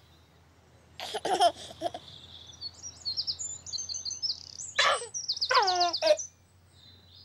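A baby giggles and coos.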